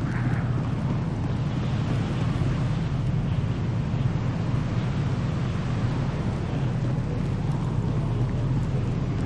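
Footsteps tread on a hard surface.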